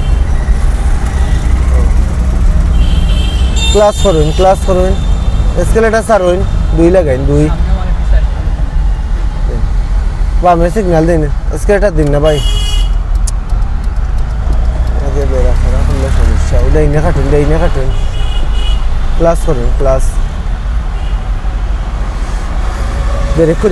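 A car engine rumbles steadily as the car drives along a road.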